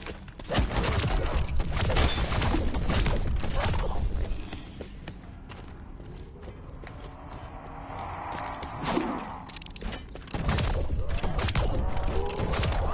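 An electric weapon crackles and zaps in rapid bursts.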